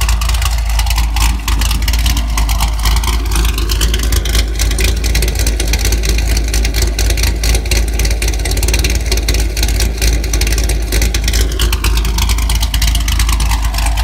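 A sports car's engine revs up and settles back down.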